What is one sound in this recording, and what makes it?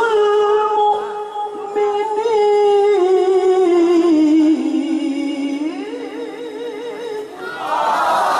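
A young man chants in a long, melodic voice through a microphone with echo.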